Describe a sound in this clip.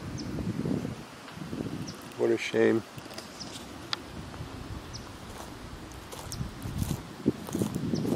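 Footsteps swish through dry grass.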